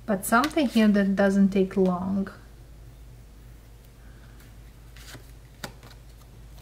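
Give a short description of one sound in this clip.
Playing cards slide and tap softly against each other.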